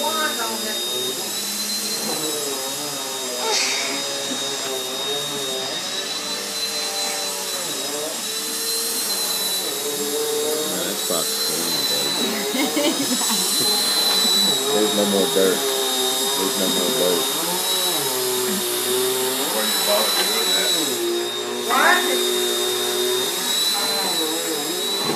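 A vacuum cleaner runs with a steady high whine.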